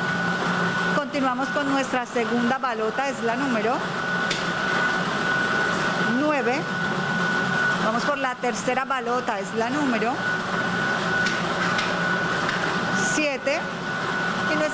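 A woman announces through a microphone.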